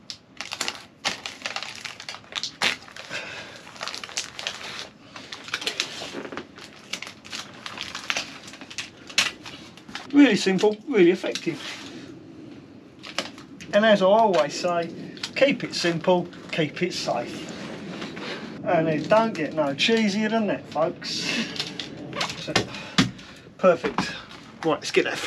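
Foil insulation crinkles under hands pressing it down.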